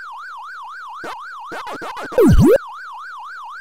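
Electronic blips and chirps sound as a ghost is eaten.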